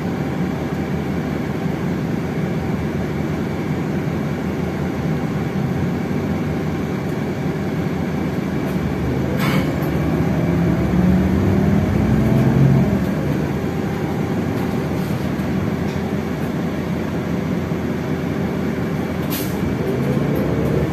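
A city bus drives along, heard from inside with a rumbling hum.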